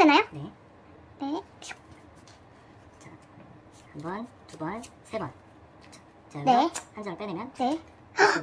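Playing cards slide and snap softly between hands.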